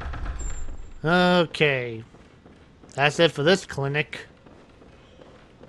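Footsteps run across a wooden floor.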